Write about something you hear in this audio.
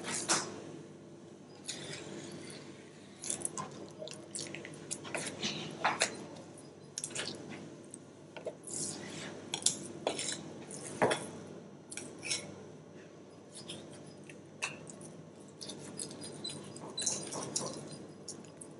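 A knife scrapes and slices along a fish fillet on a plastic board.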